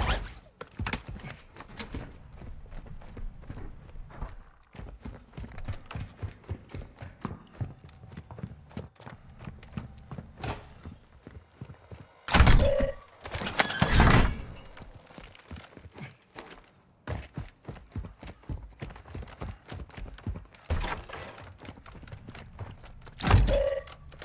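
Footsteps thud quickly across hard floors and ground.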